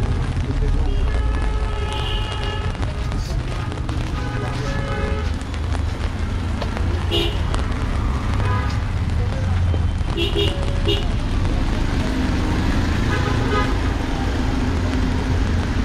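Traffic rumbles steadily along a wet street.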